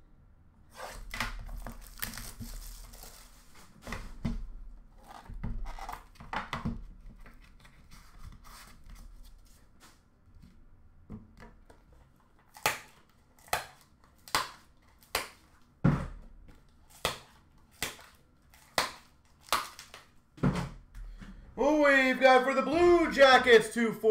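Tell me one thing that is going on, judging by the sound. Cards and packaging rustle and knock as they are handled close by.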